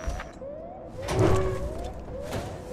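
A heavy metal door slides open with a deep thud.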